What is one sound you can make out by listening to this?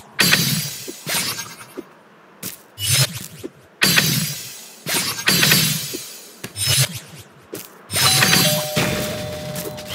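Sharp whooshing bursts sound again and again as a small game character dashes through the air.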